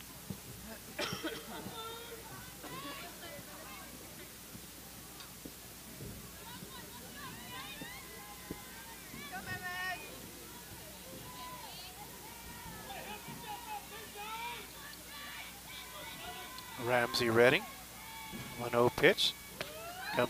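Young women on a field chant and call out encouragement outdoors.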